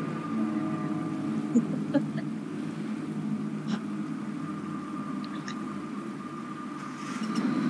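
A young woman laughs softly through a microphone.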